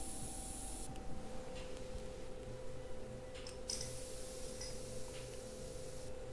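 An airbrush hisses in short spraying bursts.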